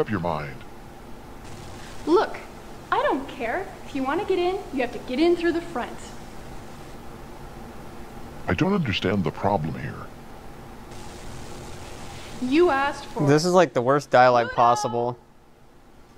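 A woman talks with animation.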